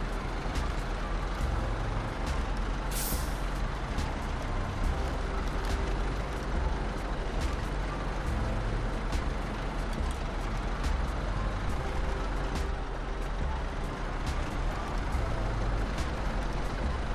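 A heavy truck engine rumbles low and steady.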